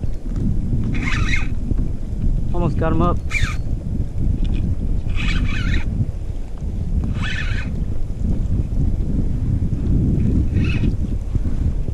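A fishing reel's drag buzzes in short bursts.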